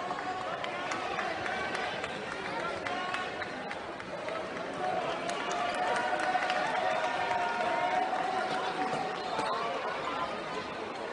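A crowd chatters and murmurs in a large echoing arena.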